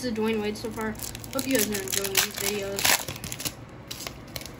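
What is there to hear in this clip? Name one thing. A foil wrapper crinkles as it is handled.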